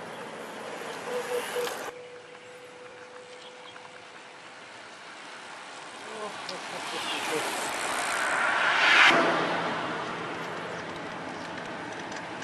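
Bicycles roll along a paved road outdoors in wind.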